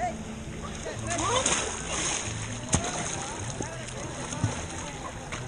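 Water splashes loudly as a swimmer kicks and strokes close by.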